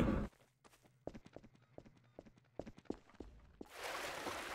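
Footsteps thud softly on grass.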